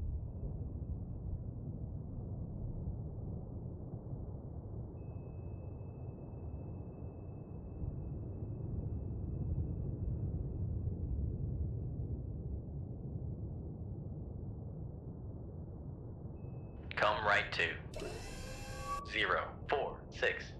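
A submarine's engines hum with a deep, steady underwater rumble.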